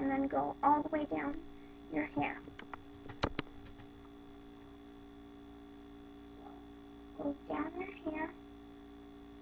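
A young girl talks close to a microphone.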